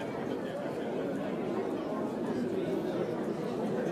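An elderly man talks and laughs with animation.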